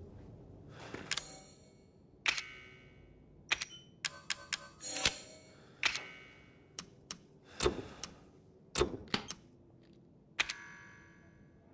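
Short electronic clicks and chimes sound one after another.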